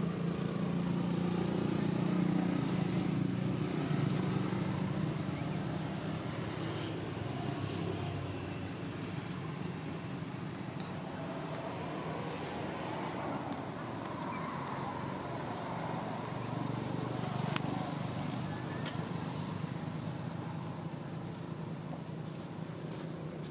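A baby monkey rustles through dry leaves on the ground.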